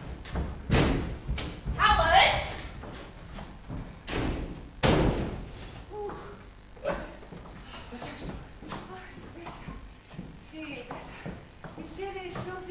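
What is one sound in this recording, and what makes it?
Footsteps thud and knock on a hollow wooden floor.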